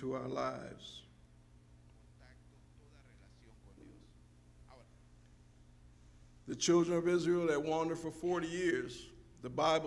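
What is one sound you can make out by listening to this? A man preaches into a microphone with feeling, his voice echoing in a large hall.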